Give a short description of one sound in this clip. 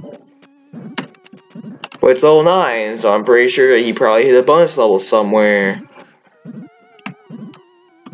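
Tinny retro video game music plays softly.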